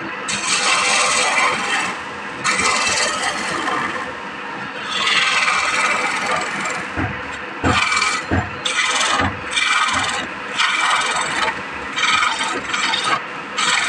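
A lathe hums steadily.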